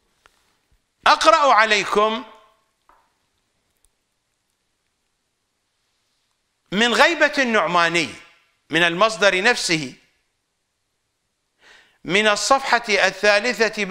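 An elderly man recites in a melodic, chanting voice close to a microphone, pausing between phrases.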